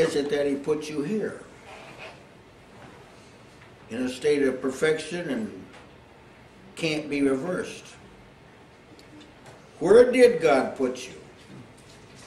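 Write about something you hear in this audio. An elderly man preaches forcefully in short bursts, with pauses between phrases.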